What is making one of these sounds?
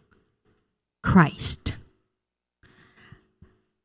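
A woman speaks into a microphone, heard through a loudspeaker.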